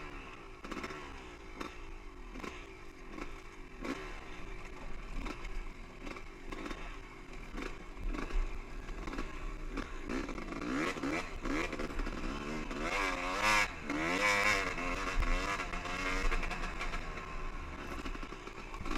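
Tyres crunch over rocks and gravel.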